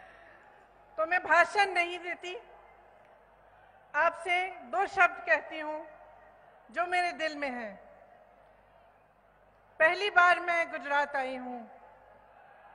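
A woman speaks forcefully into a microphone, in short bursts with pauses.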